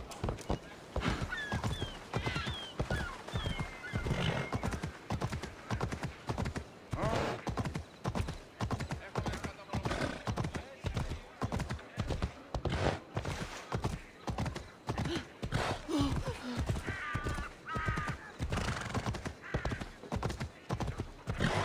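Horse hooves clop quickly on a stone and dirt road.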